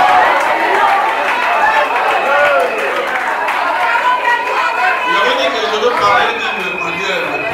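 A crowd of women sings together loudly in a large echoing hall.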